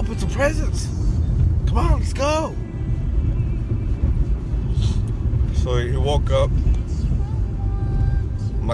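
A car engine and road noise rumble low and steady inside a car.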